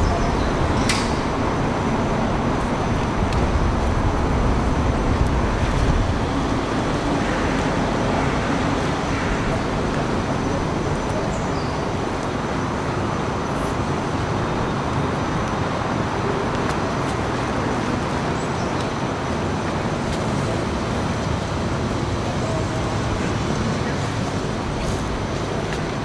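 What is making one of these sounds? A cello is bowed with low, sustained notes.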